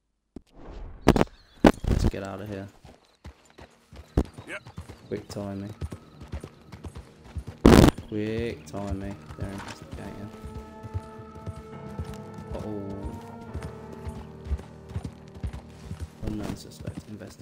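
A horse's hooves thud steadily on a dirt path.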